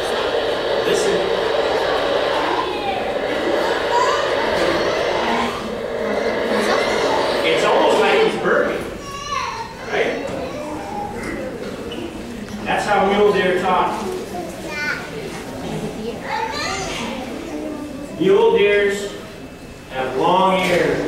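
An older man speaks out to a group, with pauses.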